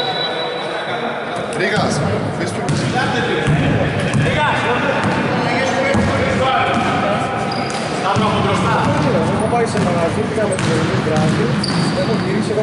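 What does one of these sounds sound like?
Male players call out to each other across the hall.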